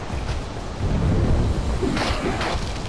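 An explosion bursts with a loud boom.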